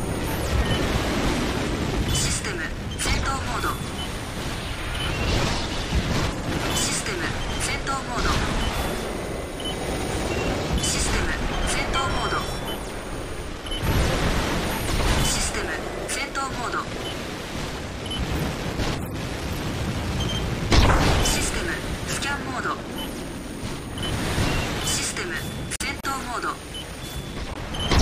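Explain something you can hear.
Giant robots' jet boosters roar in a video game.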